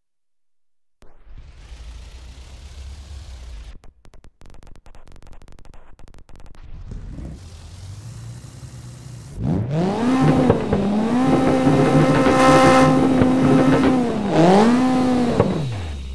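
A racing car engine revs hard and roars.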